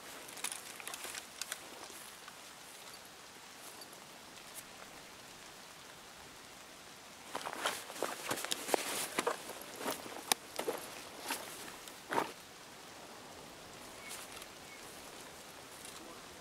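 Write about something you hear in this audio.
Leafy branches rustle and swish as someone pushes through them.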